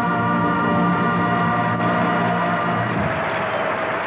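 A woman sings and holds a long final note.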